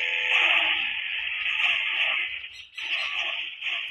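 A vehicle crashes and scrapes over rough ground.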